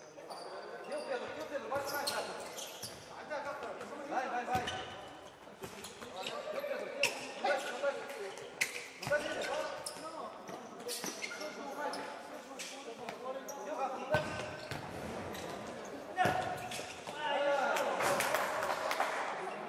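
Shoes squeak on a hard indoor court.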